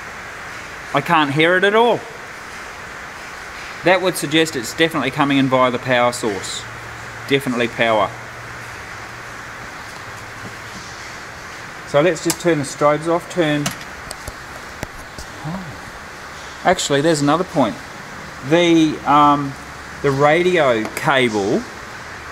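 A middle-aged man talks calmly into a close headset microphone, in short bursts with pauses.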